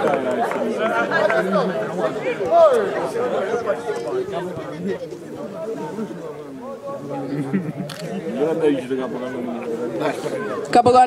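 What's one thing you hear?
A man speaks at a distance outdoors.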